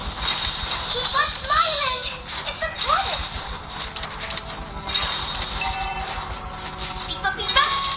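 A young woman speaks casually into a microphone.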